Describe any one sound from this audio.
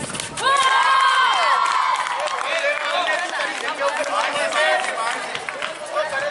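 Children shout and call out excitedly outdoors.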